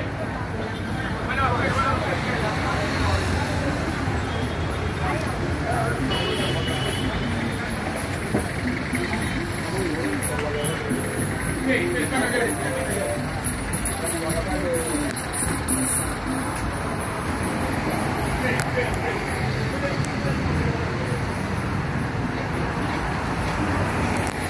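Street traffic hums steadily nearby outdoors.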